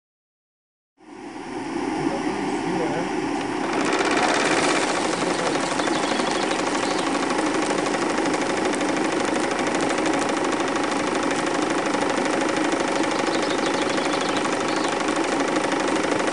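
A small steam engine chuffs and hisses steadily, close by.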